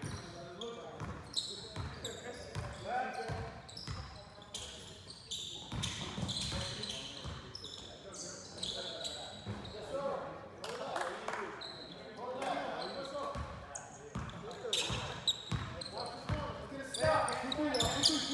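A basketball bounces on a hardwood court in a large echoing gym.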